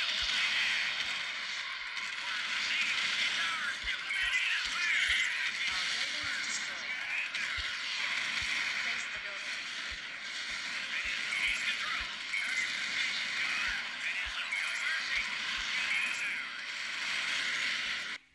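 Explosions boom in a video game battle.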